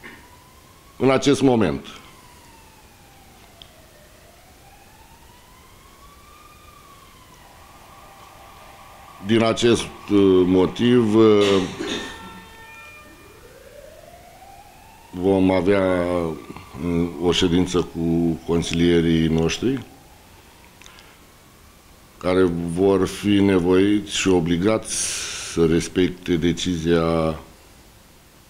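A middle-aged man speaks calmly into microphones, in bursts with pauses.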